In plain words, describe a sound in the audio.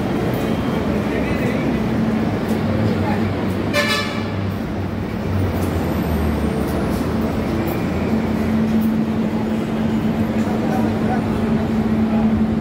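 A crowd murmurs with many voices nearby.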